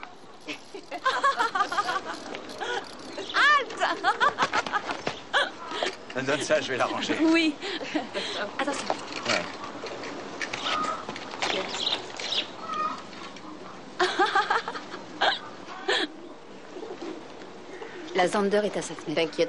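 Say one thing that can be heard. Women talk with animation close by.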